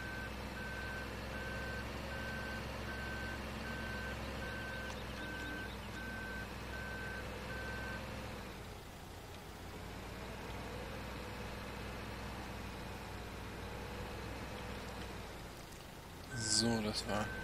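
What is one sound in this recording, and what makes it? A tractor engine idles and drones steadily.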